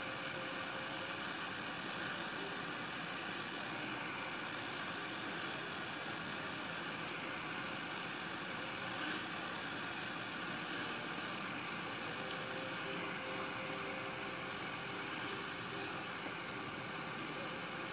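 A small gas torch hisses steadily.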